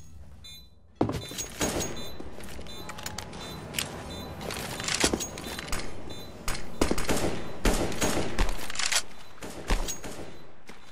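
Game footsteps thud on concrete as a character runs.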